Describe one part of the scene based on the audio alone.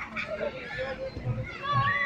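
A young boy laughs.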